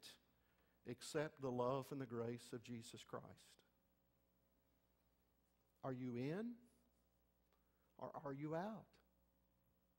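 A middle-aged man preaches with emphasis through a microphone, pausing between phrases.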